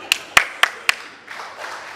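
A man claps his hands a few times.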